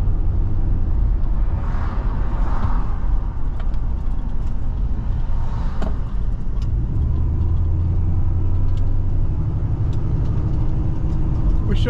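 A car engine hums steadily from inside the cabin while driving.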